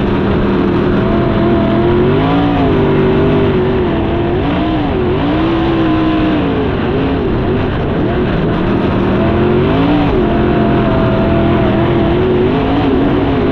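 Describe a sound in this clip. Other race car engines roar nearby.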